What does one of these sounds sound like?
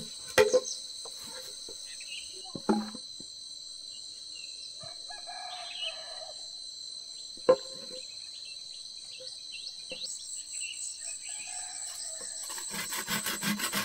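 Insects buzz steadily outdoors.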